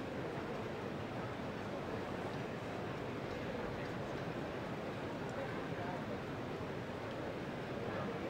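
An orchestra begins to play in a large, echoing hall.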